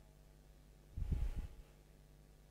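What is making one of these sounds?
Footsteps tap on a hard tiled floor.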